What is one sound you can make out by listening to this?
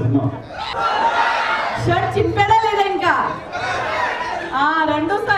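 A woman speaks with animation into a microphone over loudspeakers.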